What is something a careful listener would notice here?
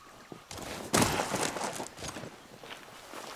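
An explosion booms with a loud blast.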